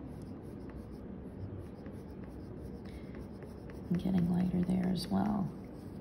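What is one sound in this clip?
A pencil scratches quickly back and forth on paper.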